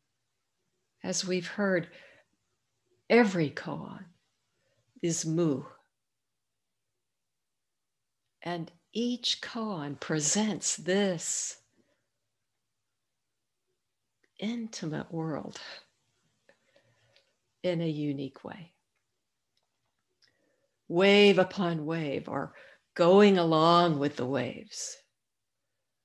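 An elderly woman speaks calmly over an online call, in short bursts with pauses.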